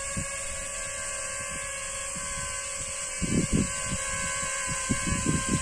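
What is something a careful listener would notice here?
A drone's propellers buzz steadily overhead.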